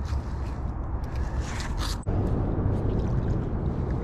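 A heavy magnet splashes into water.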